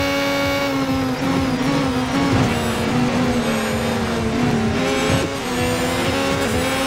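A second racing car engine whines close by.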